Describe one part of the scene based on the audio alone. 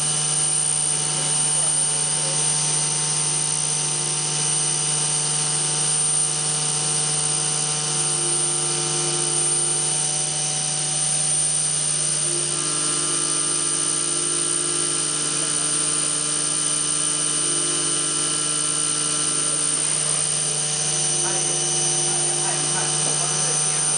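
A milling machine spindle whines steadily as its cutter grinds through metal.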